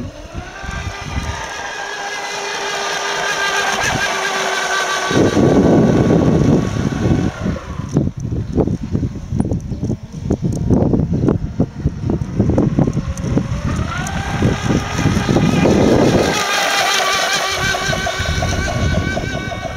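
A model boat's engine whines at a high pitch, rising and falling as it speeds across the water.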